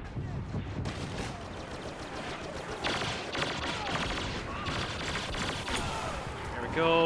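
Blaster guns fire in rapid bursts.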